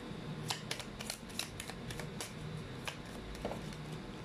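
Playing cards flick and rustle as a deck is shuffled by hand.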